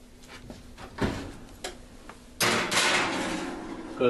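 An oven door opens with a metal clank.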